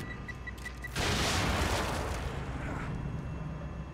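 An explosion bursts with a loud roar and then dies away.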